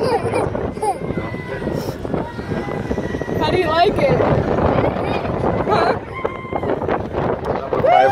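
A young girl laughs and squeals with delight.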